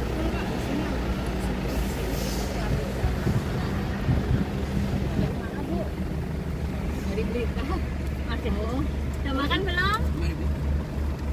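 A bus engine hums steadily at idle.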